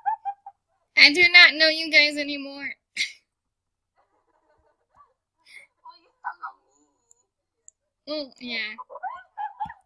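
Young women shriek and laugh loudly over an online call.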